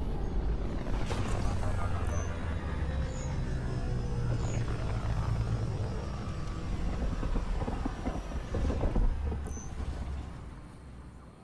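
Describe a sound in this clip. A spacecraft's engines rumble and whoosh deeply as it swoops in and slows to a hover.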